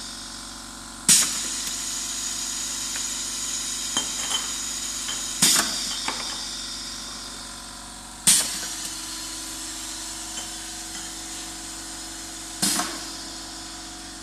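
A filling machine hums and whirs steadily.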